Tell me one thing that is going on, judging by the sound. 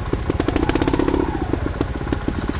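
An electric motorbike motor whines briefly.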